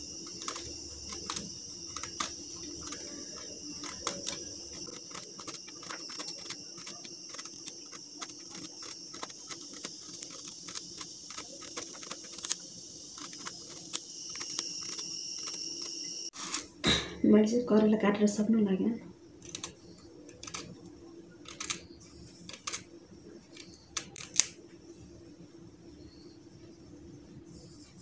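A vegetable peeler scrapes the skin off a bitter gourd in short strokes.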